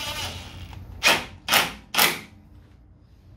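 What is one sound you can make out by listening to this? A cordless impact wrench rattles in three short, loud bursts.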